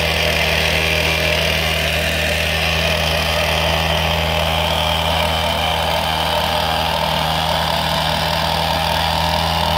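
A truck engine idles with a steady low rumble.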